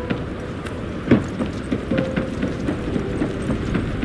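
Footsteps run quickly across a hard metal floor.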